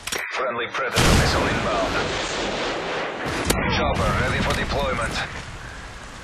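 A missile streaks down and explodes with a loud roaring blast.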